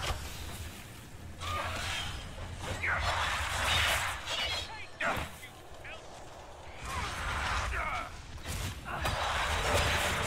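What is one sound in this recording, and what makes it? Blades clash and strike.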